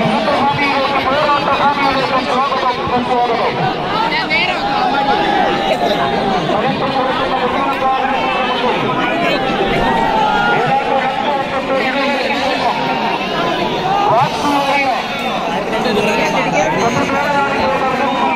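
A large crowd of men cheers and shouts loudly outdoors.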